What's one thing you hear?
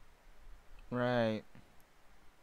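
A young man makes a short vocal sound close to a microphone.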